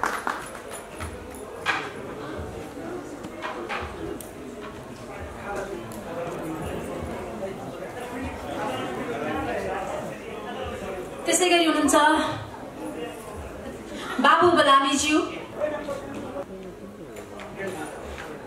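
A woman talks nearby in an echoing hall.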